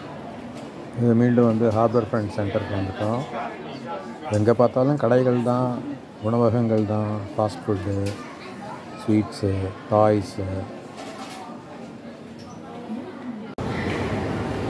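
A crowd of shoppers murmurs in a busy indoor hall.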